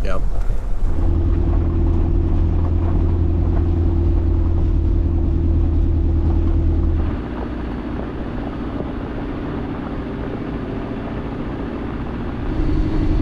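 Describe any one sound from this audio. Tyres crunch on a gravel road.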